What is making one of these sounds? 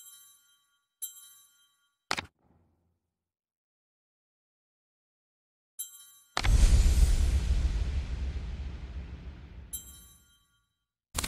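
Menu chimes sound as cards are selected.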